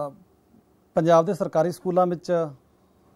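A middle-aged man speaks calmly and with emphasis, close to a microphone.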